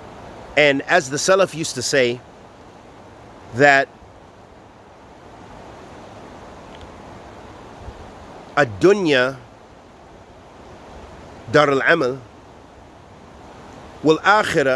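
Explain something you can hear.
A man talks calmly and closely into the microphone, in short bursts with pauses.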